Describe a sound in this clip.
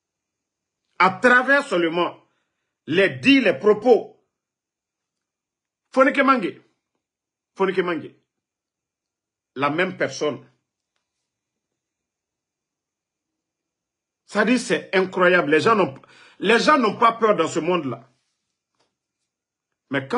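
A man speaks with animation, close to a microphone, in short bursts with pauses.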